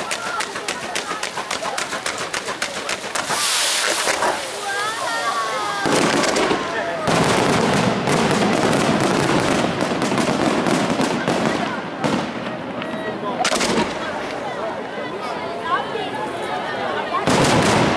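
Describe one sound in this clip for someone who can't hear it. Fireworks crackle and pop in rapid bursts.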